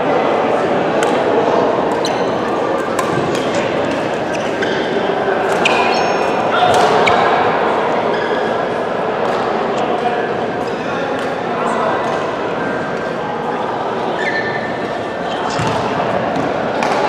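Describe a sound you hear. Young men and women call out and chatter at a distance.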